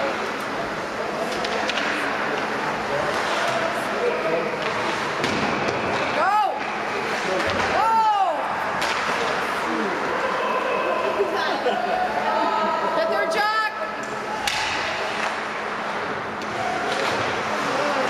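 Hockey sticks clack against a puck and the boards.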